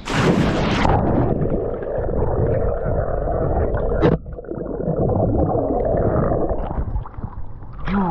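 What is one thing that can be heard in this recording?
Bubbles rumble and gurgle underwater.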